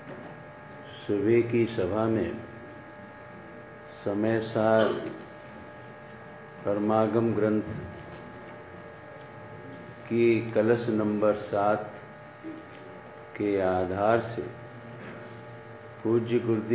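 An elderly man speaks slowly and forcefully into a microphone, through loudspeakers, with pauses between phrases.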